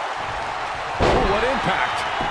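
A body slams onto a wrestling ring mat.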